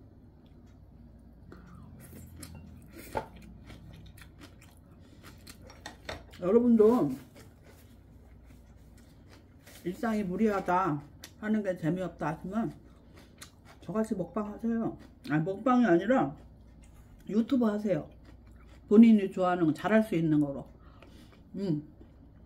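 A woman chews and slurps food close to the microphone.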